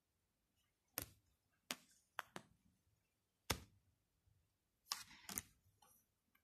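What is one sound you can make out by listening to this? Playing cards tap and slide against a soft surface.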